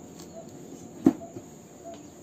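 A cardboard box thumps as it is handled.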